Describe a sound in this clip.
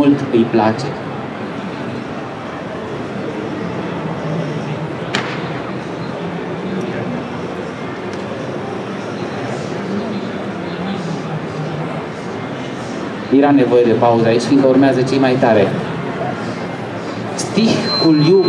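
A man speaks with animation into a microphone over loudspeakers in an echoing hall.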